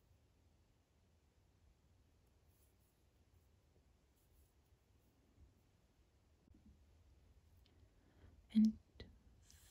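A crochet hook softly rustles and taps against thread.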